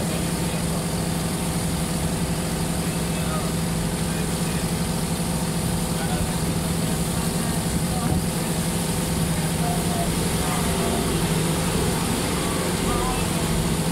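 A boat engine hums steadily and loudly throughout.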